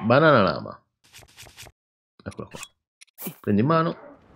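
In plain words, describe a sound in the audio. Short menu clicks and chimes sound in quick succession.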